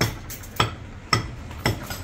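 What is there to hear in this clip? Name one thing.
A hammer strikes with sharp, regular knocks.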